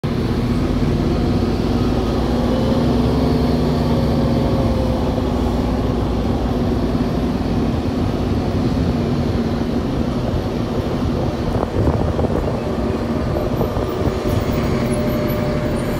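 A bus engine rumbles and hums steadily, heard from inside the bus.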